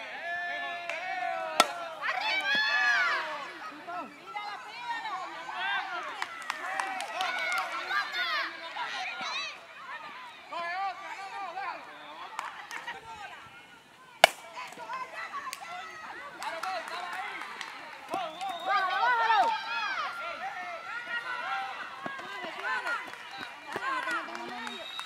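Young women shout and cheer outdoors with lively energy.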